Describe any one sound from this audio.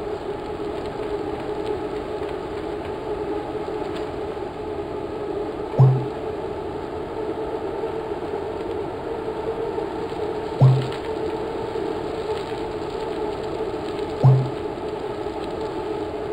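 Bicycles roll steadily along a road.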